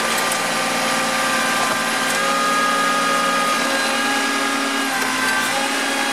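A concrete slab cracks and grinds as it is lifted.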